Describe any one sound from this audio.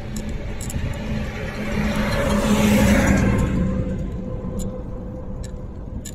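A truck passes by on a nearby road, swelling and fading.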